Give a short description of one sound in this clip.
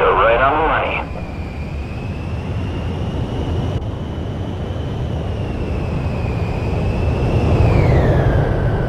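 A jet engine roars steadily with a high whine that drops in pitch as the jet passes close.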